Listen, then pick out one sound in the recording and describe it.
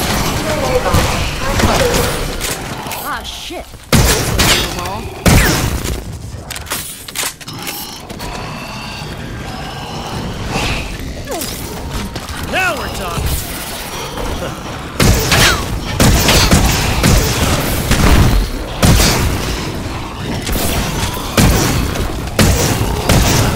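Zombies growl and shriek close by.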